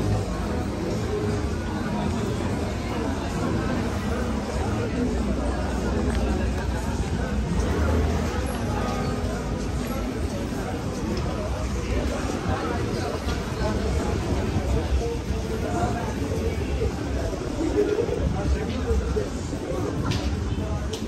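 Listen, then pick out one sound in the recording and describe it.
Distant voices chatter along a busy street outdoors.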